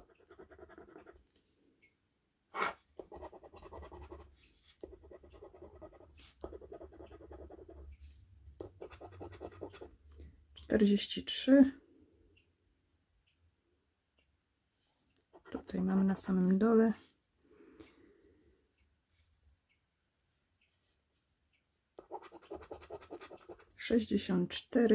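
A coin scratches rapidly across a scratch card.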